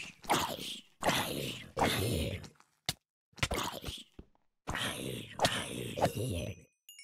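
A sword swishes in a sweeping attack.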